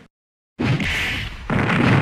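A pistol fires.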